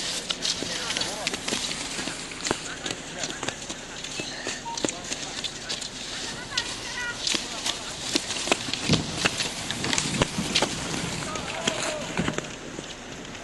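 Ski poles click and crunch into the snow.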